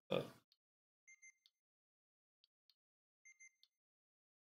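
Game menu selections blip softly.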